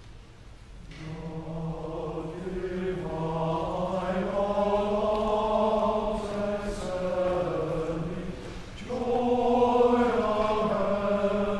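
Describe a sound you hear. A young man sings through a microphone in a reverberant hall.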